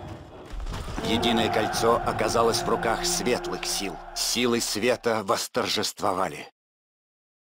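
A triumphant musical fanfare plays.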